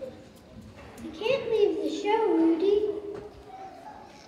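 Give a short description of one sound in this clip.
A young girl speaks clearly into a microphone.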